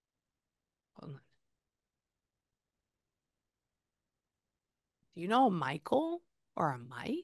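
A woman speaks close to a microphone in a calm, soft voice.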